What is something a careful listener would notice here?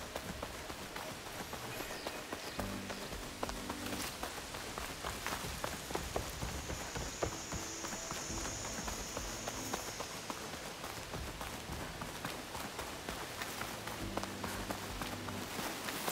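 Quick footsteps thud and rustle through undergrowth.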